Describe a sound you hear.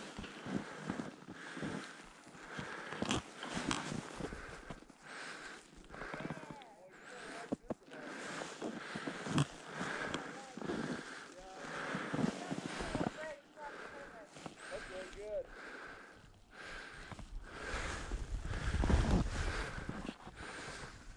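Skis hiss and scrape across soft snow in rhythmic turns.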